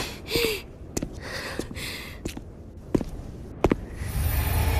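Boots click in slow footsteps on a hard floor.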